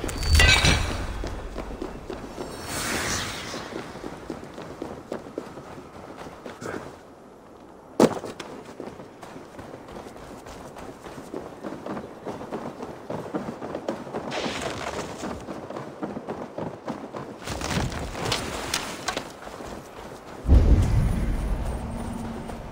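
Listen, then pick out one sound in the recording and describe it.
Footsteps thud on stone and earth.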